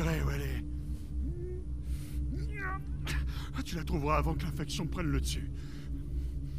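An older man speaks calmly in a low, gravelly voice.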